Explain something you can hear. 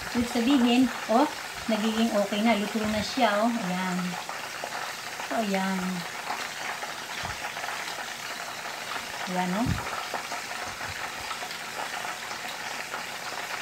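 Metal tongs scrape and clink against a frying pan.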